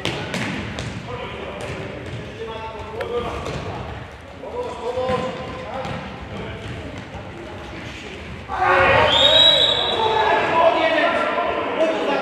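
A ball is kicked with sharp thuds in a large echoing hall.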